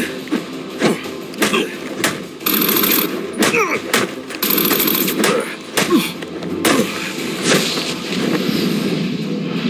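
A gruff man grunts and cries out during a fistfight.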